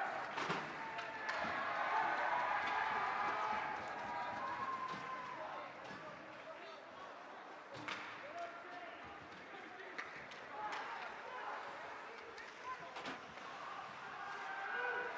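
Skates scrape and carve across the ice.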